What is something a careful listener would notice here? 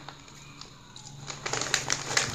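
A foil snack bag crinkles as a hand reaches in.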